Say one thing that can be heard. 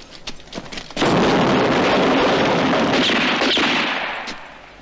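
An explosion roars.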